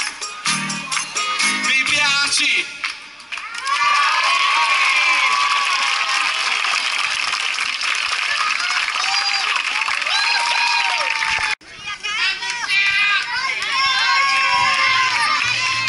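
A large crowd cheers and screams loudly outdoors.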